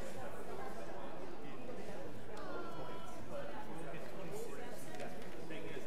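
An organ plays in a large echoing hall.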